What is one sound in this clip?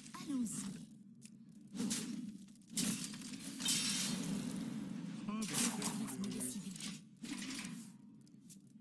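Chiming and whooshing effects from a card game play in bursts.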